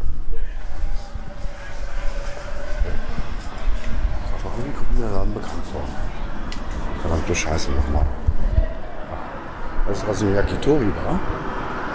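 Footsteps walk along a paved street.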